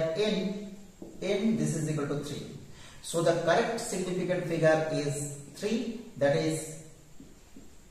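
A man speaks calmly and clearly, close by, explaining.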